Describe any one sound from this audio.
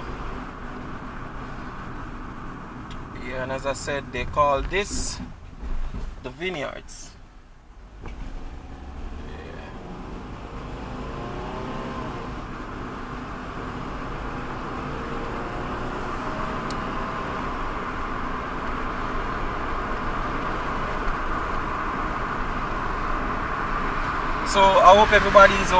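Car tyres hum steadily on an open road.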